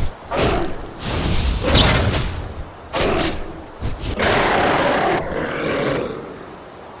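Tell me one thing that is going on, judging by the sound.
A bear growls and roars.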